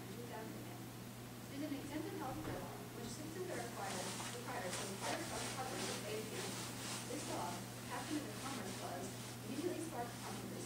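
A young person speaks steadily into a microphone in a room with some echo.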